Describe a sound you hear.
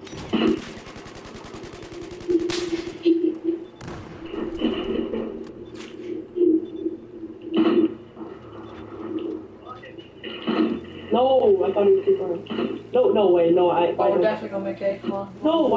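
An assault rifle fires in a video game.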